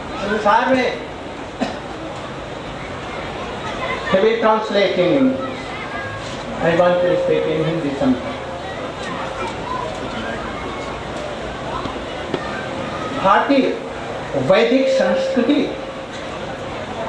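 An elderly man speaks slowly and calmly into a microphone.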